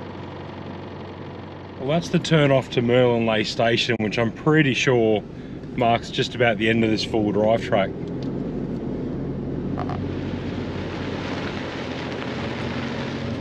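A vehicle engine rumbles steadily while driving on a dirt track.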